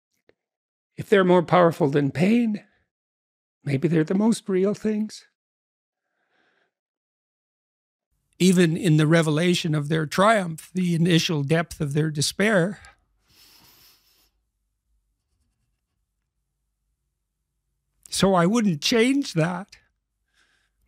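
An older man speaks calmly and thoughtfully into a close microphone.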